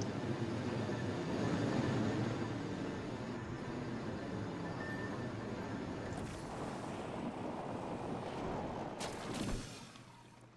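Wind rushes loudly during a fast descent, then cuts off.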